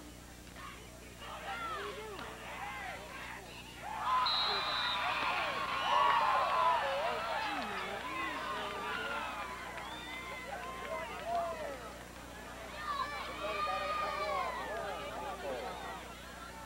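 Men on the sideline shout and talk excitedly nearby.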